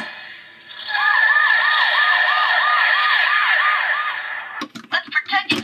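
A toy car plays a wailing electronic siren.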